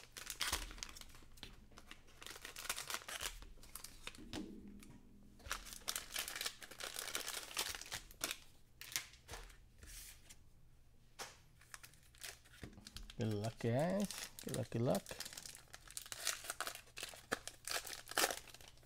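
Foil card packs crinkle and rustle as they are torn open and handled.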